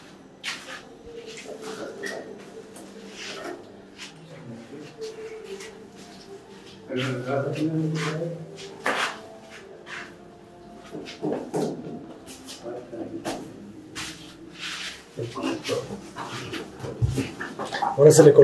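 A middle-aged man talks nearby in a calm, conversational way.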